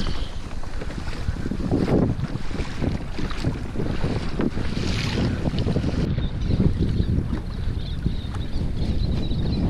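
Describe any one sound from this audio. Small waves slap against the hull of a kayak.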